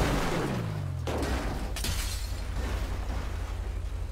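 A car crashes and tumbles onto its roof.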